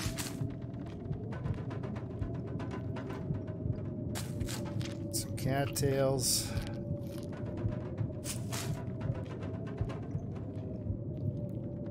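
Someone crunches and chews on a tough stalk.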